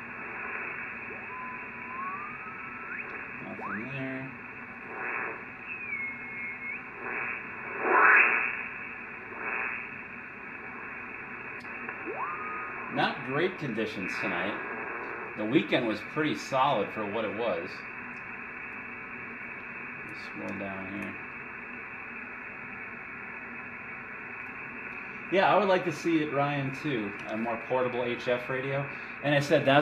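A radio receiver hisses steadily with static.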